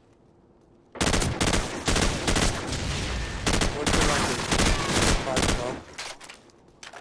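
A rifle fires in rapid bursts of loud gunshots.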